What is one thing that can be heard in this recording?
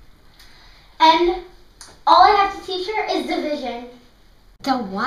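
Young girls talk with animation close by.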